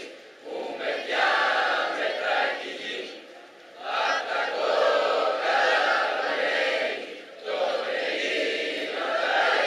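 A large crowd of young people sings together outdoors in long phrases with short pauses.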